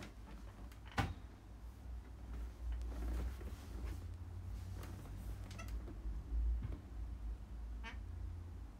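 Hands fiddle with a small object, making soft clicks and rustles, close by.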